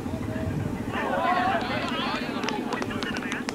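Men on the field shout excitedly outdoors.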